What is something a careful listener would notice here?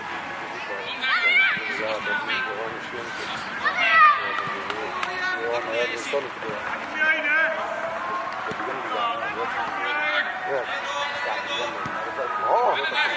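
Children shout excitedly outdoors.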